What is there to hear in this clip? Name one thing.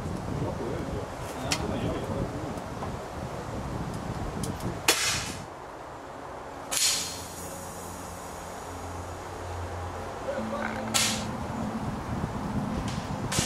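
Air rifles fire with sharp, snapping cracks.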